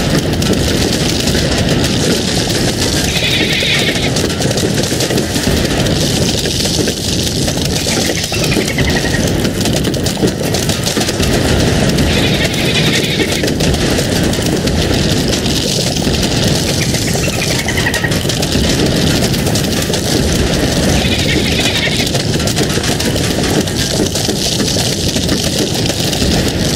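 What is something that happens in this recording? Plants rapidly fire peas with a dense, steady stream of popping.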